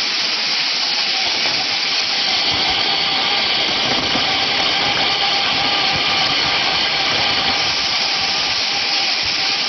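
Fruit rolls and knocks against each other on a moving belt.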